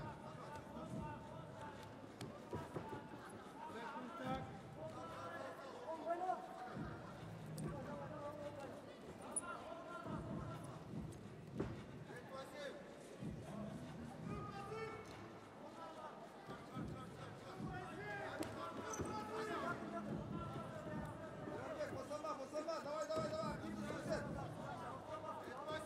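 A crowd murmurs and shouts in a large echoing arena.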